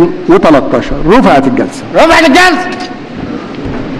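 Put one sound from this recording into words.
An elderly man speaks firmly into a microphone.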